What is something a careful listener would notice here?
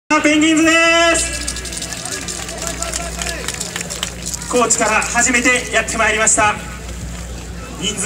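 Music plays loudly over outdoor loudspeakers.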